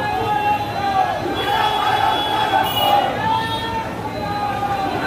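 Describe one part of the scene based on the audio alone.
A large crowd of men shouts and chatters loudly outdoors.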